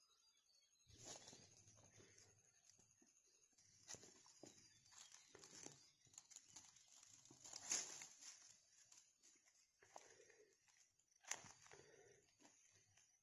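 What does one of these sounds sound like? Footsteps rustle through dry leaves and plants.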